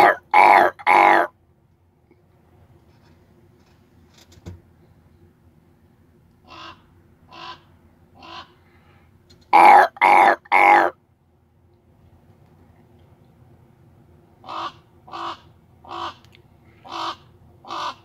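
A raven croaks loudly close by, in short harsh calls.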